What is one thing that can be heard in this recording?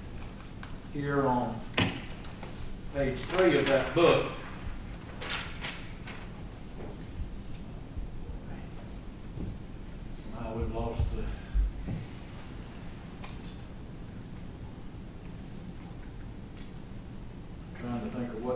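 A middle-aged man asks questions calmly through a microphone.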